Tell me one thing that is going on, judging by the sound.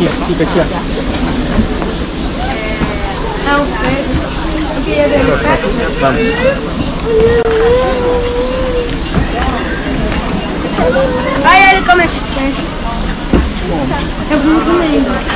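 A crowd of adult visitors chatters nearby outdoors.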